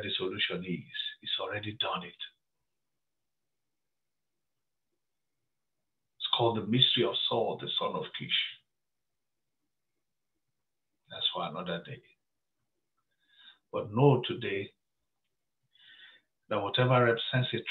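A middle-aged man speaks calmly into a close microphone, pausing between phrases.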